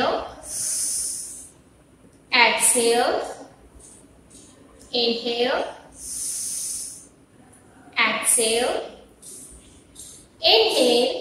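A young woman speaks clearly in short, slow phrases close by.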